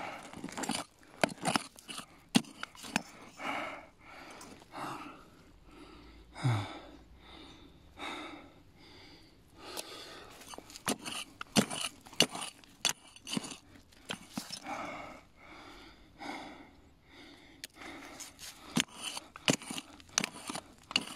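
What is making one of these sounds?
A digging tool scrapes and crunches into stony soil.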